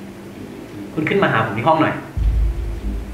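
A man talks on a phone.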